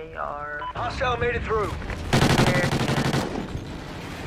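A rifle fires rapid bursts of shots nearby.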